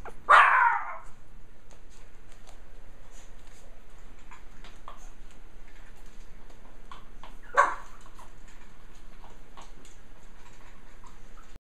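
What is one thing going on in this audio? Small puppies whimper and squeak softly.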